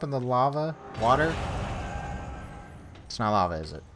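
A heavy door grinds open.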